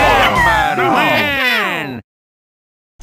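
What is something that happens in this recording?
A cheerful electronic jingle plays with quick falling notes.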